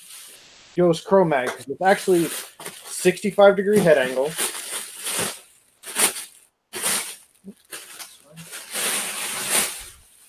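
Plastic wrapping rustles and crinkles loudly.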